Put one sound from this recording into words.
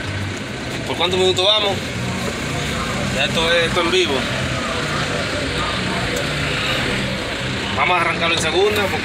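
A young man speaks cheerfully nearby.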